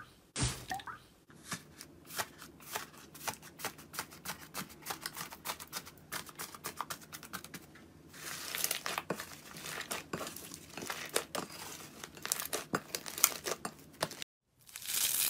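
Fingers poke and squish soft slime with wet, sticky pops.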